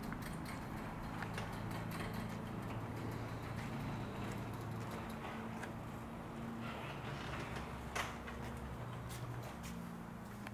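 A garage door rumbles and hums as it rolls open.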